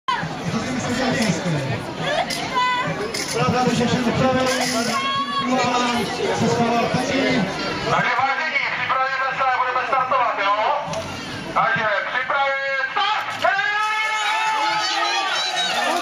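A crowd of adults and children chatters and calls out outdoors.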